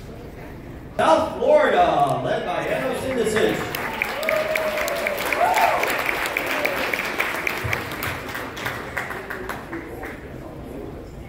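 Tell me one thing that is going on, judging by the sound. A string ensemble of guitars and mandolins plays a tune in a large hall.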